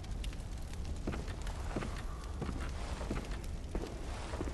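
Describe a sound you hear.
Footsteps thud on a wooden floor at a walking pace.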